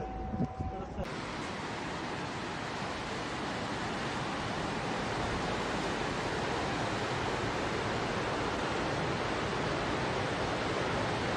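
A fast river rushes and roars steadily.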